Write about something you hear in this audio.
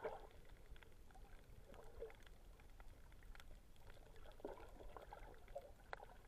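Water swirls and rumbles softly, heard muffled from underwater.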